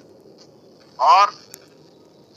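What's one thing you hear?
A man's voice briefly sounds through an online call.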